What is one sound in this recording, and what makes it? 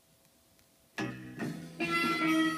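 Music plays from a vinyl record.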